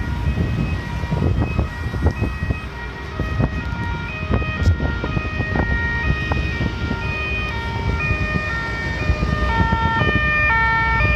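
Traffic rumbles steadily along a wide road outdoors.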